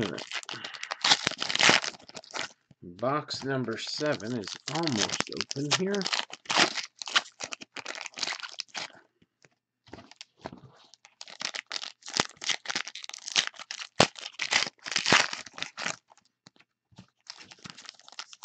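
Hands crinkle and tear open a foil wrapper.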